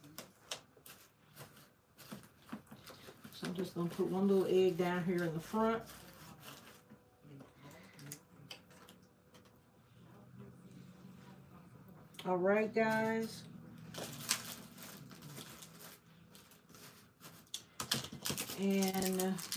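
Hands rustle plastic wrappers while packing items into a plastic basket.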